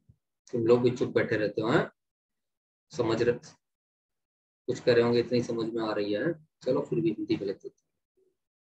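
A man lectures calmly into a close microphone, in short phrases with pauses.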